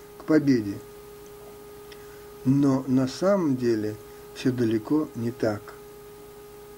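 An elderly man speaks calmly close by, in short bursts with pauses.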